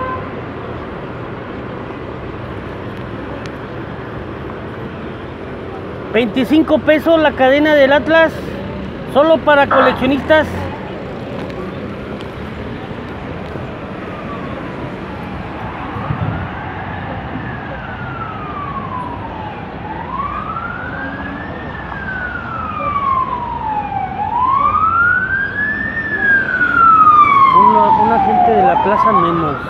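Traffic hums steadily outdoors.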